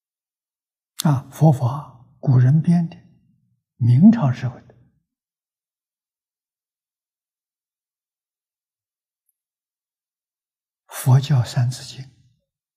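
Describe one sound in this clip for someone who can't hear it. An elderly man speaks calmly, close to a microphone, with long pauses.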